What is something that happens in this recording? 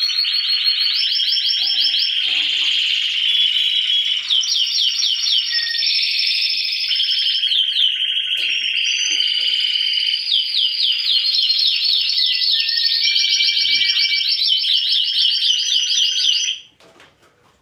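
Many caged songbirds sing and trill loudly and continuously.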